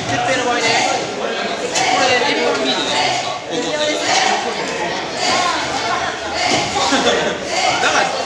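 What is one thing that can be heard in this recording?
Several young people chatter and call out in a large echoing hall.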